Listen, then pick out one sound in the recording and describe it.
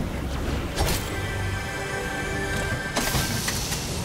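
A treasure chest opens with a shimmering, chiming sound.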